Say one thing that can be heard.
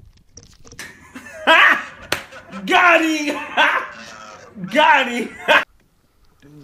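A young man shouts and laughs loudly and excitedly, close by.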